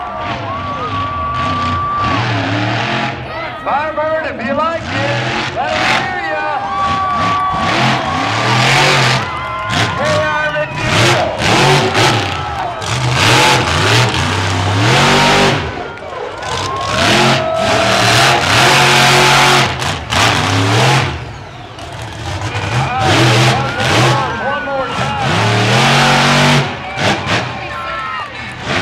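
A monster truck engine roars and revs up and down loudly.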